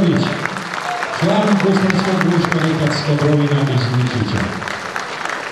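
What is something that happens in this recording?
A man sings with long, drawn-out notes through a microphone in a large hall.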